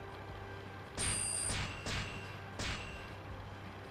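A bright electronic chime rings a few times.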